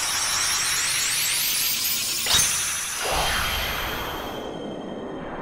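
A magical shimmering chime rings out with rising sparkles.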